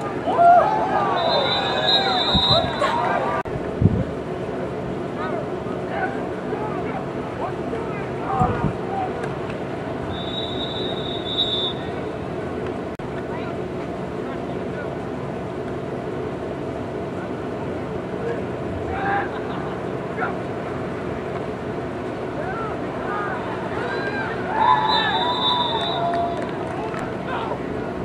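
A crowd of young people shouts and cheers outdoors at a distance.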